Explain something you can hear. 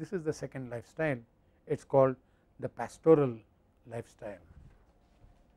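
An elderly man speaks calmly through a clip-on microphone.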